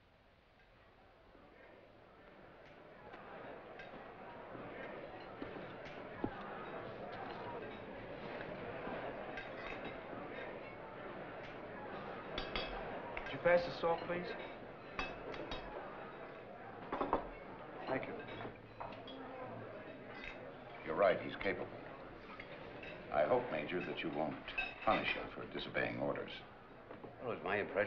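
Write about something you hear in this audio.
A crowd of men murmurs and chatters in a large room.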